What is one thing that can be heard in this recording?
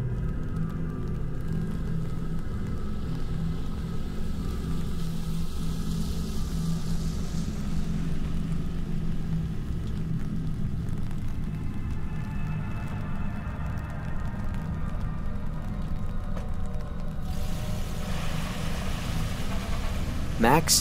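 Wind buffets the microphone outdoors with a steady low rumble.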